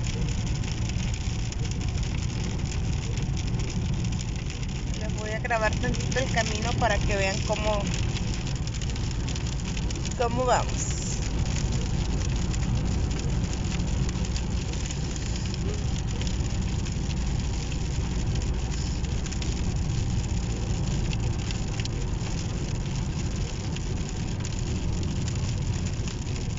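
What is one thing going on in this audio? Windscreen wipers swish back and forth across the glass.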